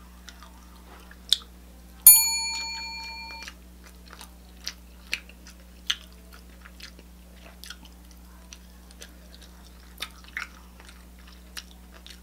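A woman chews food wetly and smacks her lips close to a microphone.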